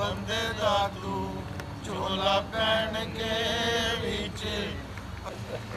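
A man chants in a long, drawn-out voice nearby.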